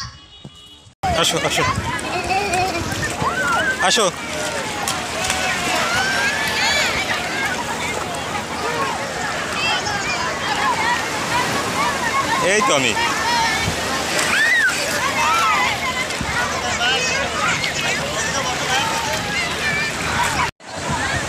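Many people chatter and shout nearby, outdoors.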